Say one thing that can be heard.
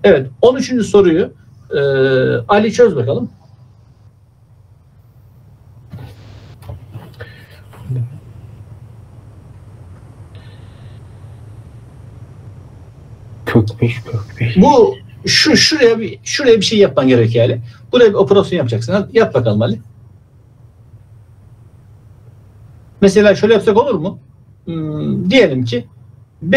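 A man speaks calmly over an online call, explaining in bursts with pauses.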